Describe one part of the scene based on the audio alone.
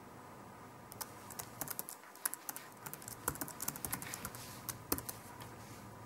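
Computer keys click rapidly as someone types.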